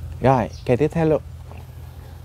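A man speaks up close with animation.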